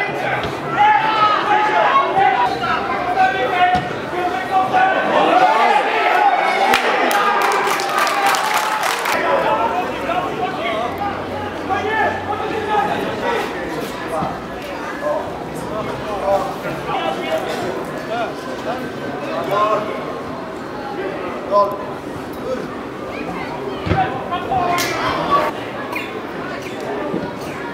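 Footballers shout to each other across an open pitch.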